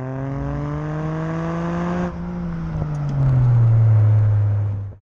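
Tyres rumble on the road surface.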